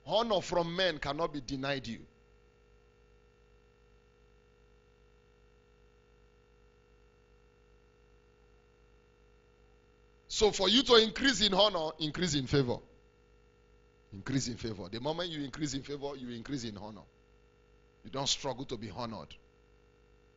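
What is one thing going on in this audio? A man speaks with animation through a microphone, in bursts with long pauses.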